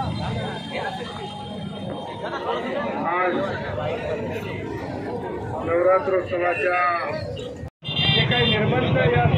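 A large crowd murmurs and chatters close by outdoors.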